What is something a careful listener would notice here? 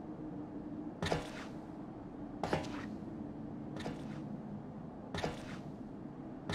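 Footsteps clack slowly on a hard floor.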